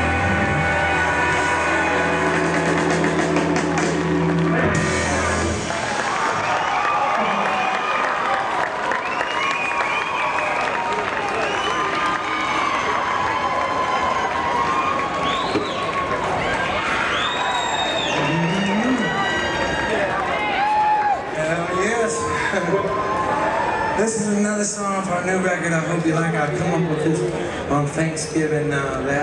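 A rock band plays loudly on an amplified outdoor stage.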